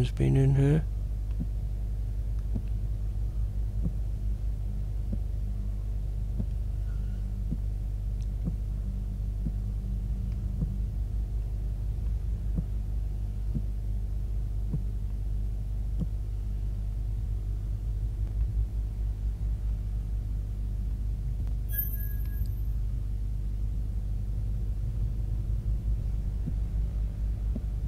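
A low electrical hum drones steadily.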